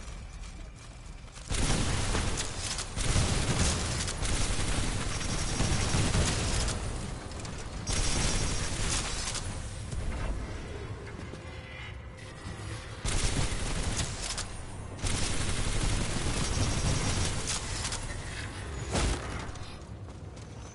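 A man talks casually through a headset microphone.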